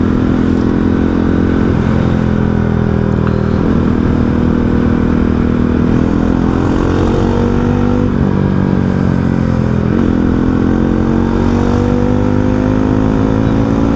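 A motorcycle engine hums loudly and steadily close by, its pitch shifting as gears change.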